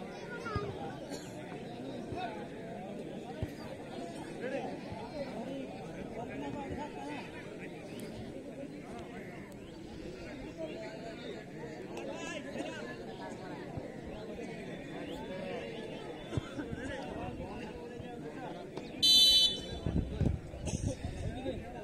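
A large outdoor crowd chatters steadily.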